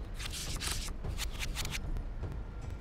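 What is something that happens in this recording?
Playing cards flip over with quick, sharp swishes.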